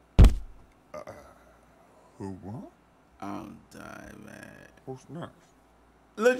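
A young man speaks quietly into a microphone.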